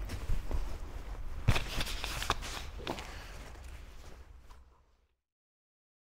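Dry twigs and leaves crackle and rustle under a man's hands outdoors.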